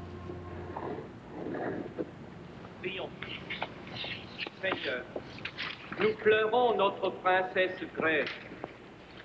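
A man speaks through a loudspeaker, echoing in a large hall.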